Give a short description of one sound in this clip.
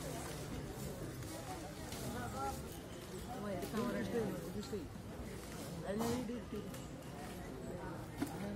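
An elephant rustles leafy branches with its trunk.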